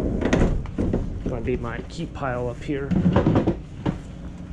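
A wooden panel clatters into a plastic bin.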